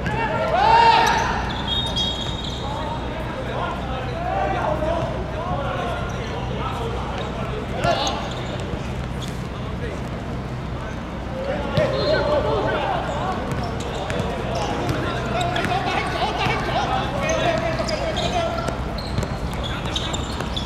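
Young men shout and call to each other across an outdoor court.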